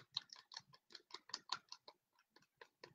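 A brush clicks and taps against a small plastic pot.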